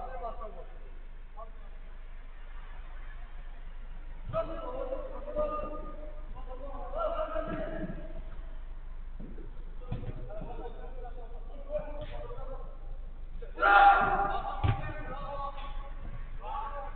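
Men shout and call out to each other across a distance, outdoors.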